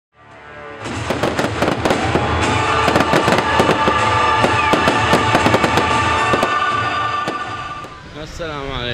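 Fireworks crackle and pop loudly overhead.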